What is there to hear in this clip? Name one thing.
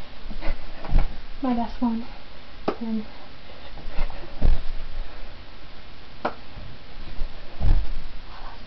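Feet thud on a floor as a young woman lands from jumps.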